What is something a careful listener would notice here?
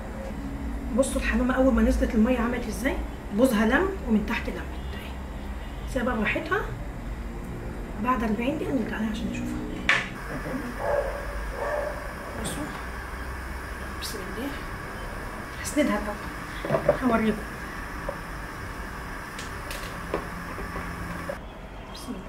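A metal ladle clinks against a metal pot.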